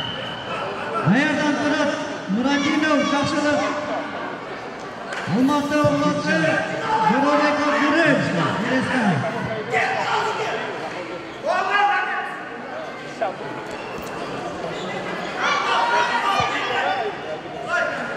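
A man talks excitedly through a loudspeaker in an echoing hall.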